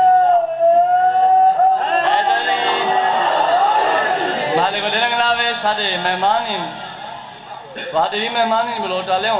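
A young man chants loudly into a microphone, his voice carried over a loudspeaker.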